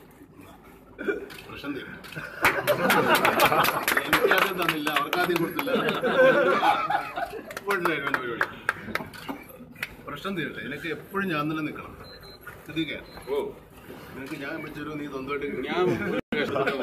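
Several men talk and laugh nearby.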